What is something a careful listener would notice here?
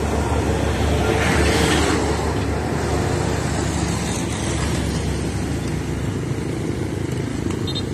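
Motorcycles putter by on the road.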